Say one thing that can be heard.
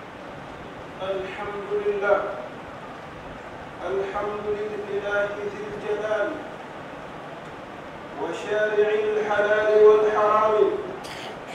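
A man chants in a long, drawn-out voice through a loudspeaker in an echoing hall.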